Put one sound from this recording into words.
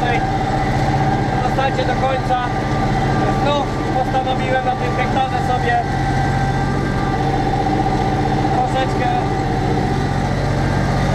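A tractor engine drones steadily, heard from inside the cab.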